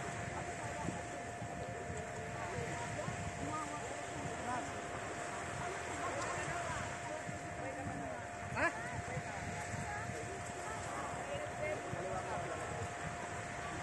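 Small waves wash gently onto the sand.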